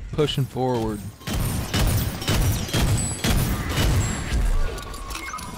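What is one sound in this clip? Cartoonish guns fire in rapid bursts.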